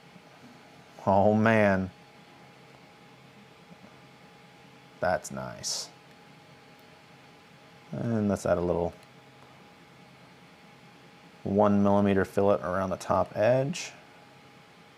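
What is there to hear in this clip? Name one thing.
A middle-aged man speaks calmly into a clip-on microphone, in short bursts.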